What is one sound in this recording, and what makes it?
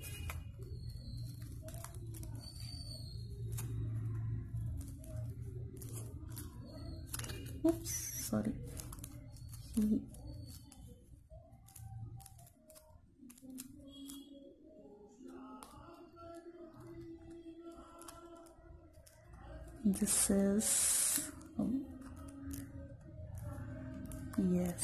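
Hands softly rustle and handle a knitted toy close by.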